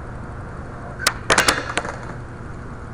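A skateboard grinds along a metal rail.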